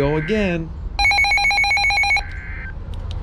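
A weather radio blares a harsh burst of buzzing data tones.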